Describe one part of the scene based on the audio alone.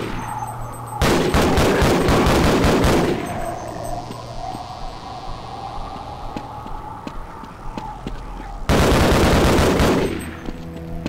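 A rifle fires rapid bursts that echo in a hard room.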